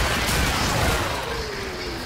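Electric zaps crackle sharply.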